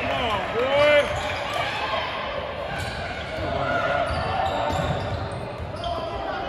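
A basketball bounces on a hard floor with an echo.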